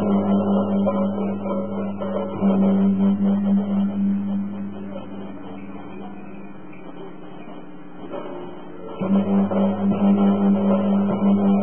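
Music blares from loudspeakers.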